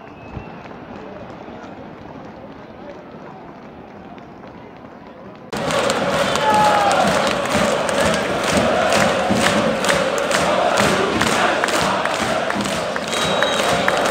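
A large stadium crowd chants and sings loudly, outdoors.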